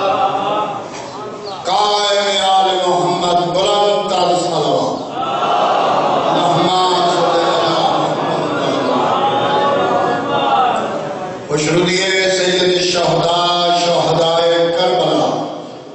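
A man sings loudly and with feeling into a microphone, heard through loudspeakers.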